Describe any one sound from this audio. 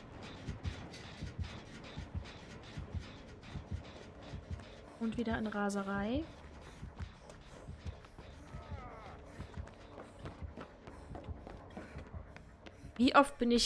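Quick footsteps run through grass and over wooden boards.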